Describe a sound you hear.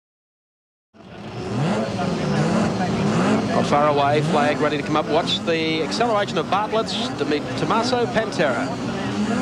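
Many race car engines roar and rev loudly together.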